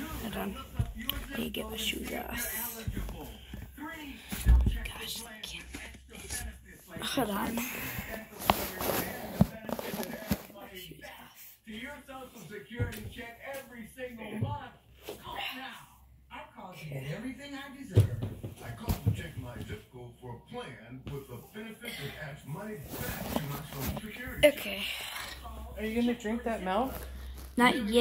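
A boy talks close to a phone microphone with animation.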